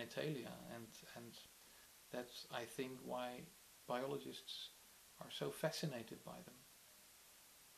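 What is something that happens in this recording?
A middle-aged man speaks calmly and thoughtfully, close by.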